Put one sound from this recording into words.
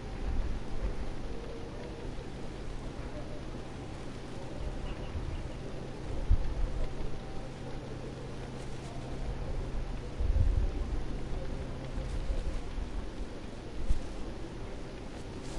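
Footsteps crunch on a forest path.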